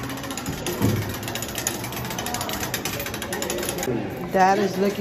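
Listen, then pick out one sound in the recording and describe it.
A hand crank clicks and rattles as it turns.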